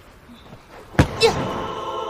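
A boy kicks a ball with a thump.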